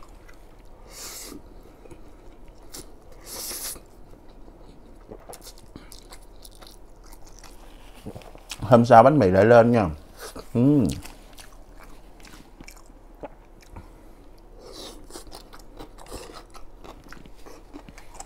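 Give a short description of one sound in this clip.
A young man chews and smacks food close to a microphone.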